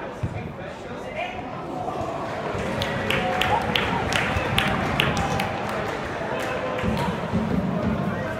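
Footballers shout to each other across an open pitch.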